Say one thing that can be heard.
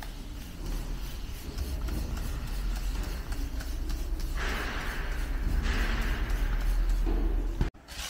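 A spray bottle hisses as it sprays liquid in short bursts.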